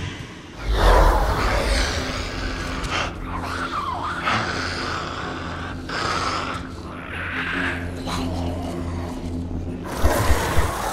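A man speaks in a rasping, menacing voice.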